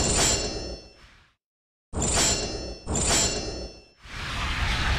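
Short chimes ring out one after another.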